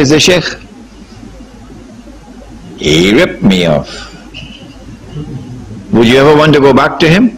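An elderly man speaks with animation into a microphone, with pauses between phrases.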